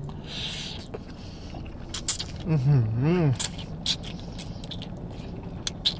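A young man slurps noodles noisily.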